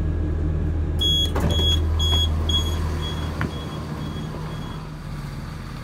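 A train door warning beeps rapidly several times.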